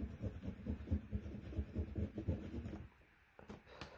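A fingertip rubs back and forth on paper.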